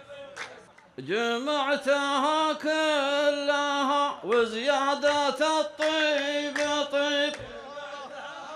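A man chants loudly into a microphone, heard through loudspeakers.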